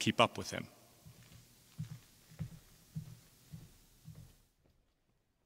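Footsteps thud across a wooden stage in a large echoing hall.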